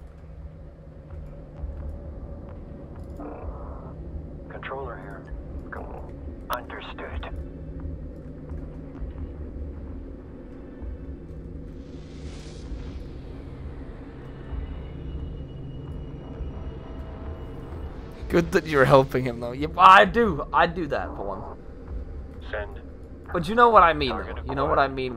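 A deep, steady engine hum drones throughout.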